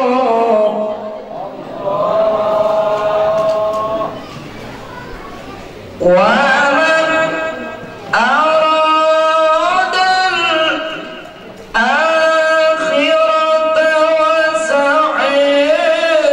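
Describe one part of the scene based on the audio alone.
A man chants a long, wavering melody through a microphone, with pauses between phrases.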